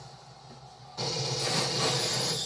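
Video game gunfire blasts loudly from a television speaker.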